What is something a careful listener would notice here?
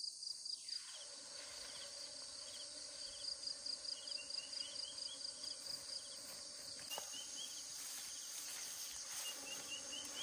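Corn leaves rustle as a man pushes through them.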